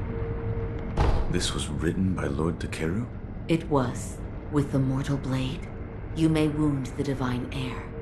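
A man speaks calmly in a low voice, close by.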